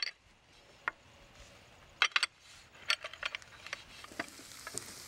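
Glass bowls clink against a ceramic platter.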